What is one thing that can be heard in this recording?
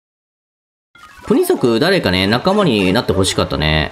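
Bright, playful game music plays.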